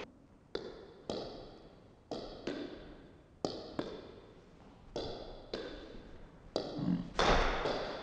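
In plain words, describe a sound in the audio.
A ping-pong ball clacks sharply off a paddle and table in a quick rhythm, ringing in a small room.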